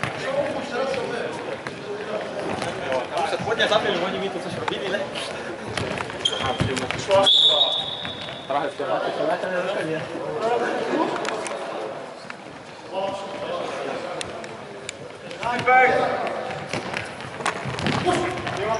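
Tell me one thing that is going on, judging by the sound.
Men shout to each other across an echoing hall.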